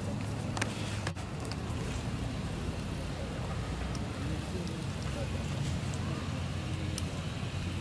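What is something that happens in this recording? Dry leaves rustle as a small monkey moves on the ground.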